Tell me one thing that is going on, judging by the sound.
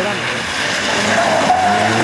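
Tyres splash through water on the road.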